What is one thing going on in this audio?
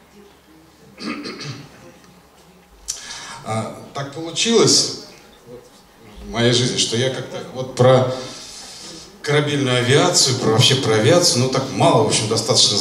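A second middle-aged man speaks with animation through a microphone.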